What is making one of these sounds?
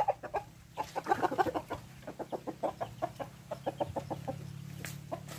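A chicken clucks rapidly while being held.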